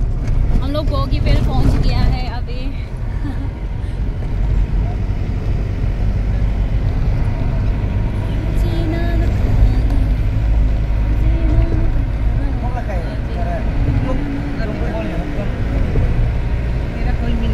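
Tyres roll over the road with a steady rumble from inside a car.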